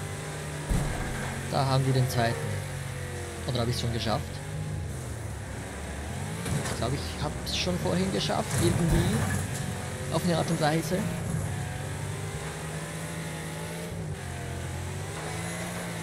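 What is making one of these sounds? Tyres skid on loose dirt.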